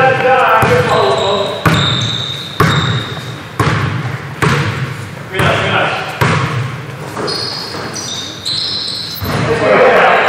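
Sneakers squeak on a hard court.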